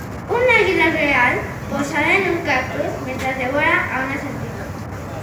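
A young girl speaks clearly into a microphone over a loudspeaker outdoors.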